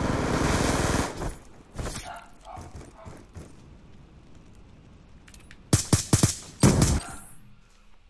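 Gunfire rings out in rapid bursts.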